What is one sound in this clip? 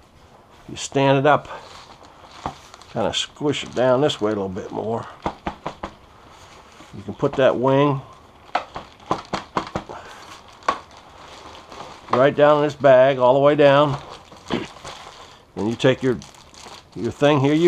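Foil insulation sheeting crinkles and rustles as it is handled.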